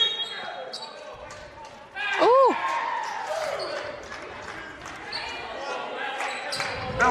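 A crowd of spectators murmurs and calls out in a large echoing gym.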